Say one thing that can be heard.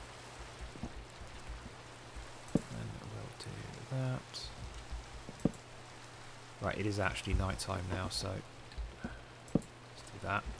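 Rain patters steadily.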